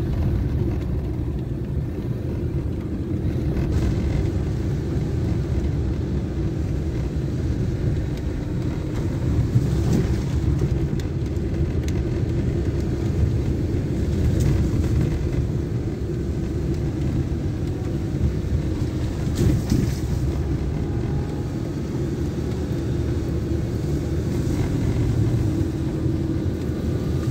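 A car engine rumbles steadily inside a car.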